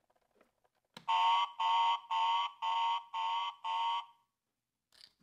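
A toy plays a repeated electronic beeping tune.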